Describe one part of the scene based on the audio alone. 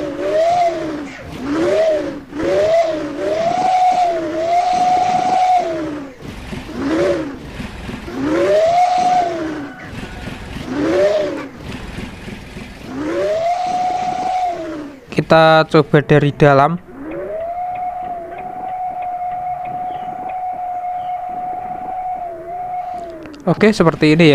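A bus horn plays a tune of rising and falling notes.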